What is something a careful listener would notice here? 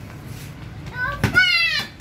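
A ball thumps as a foot kicks it on hard ground.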